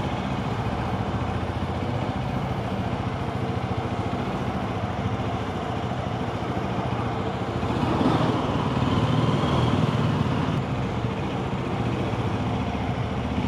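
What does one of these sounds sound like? A motorcycle engine idles and putters steadily, echoing in a large concrete space.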